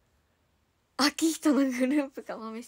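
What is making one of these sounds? A young woman speaks brightly and close to a microphone.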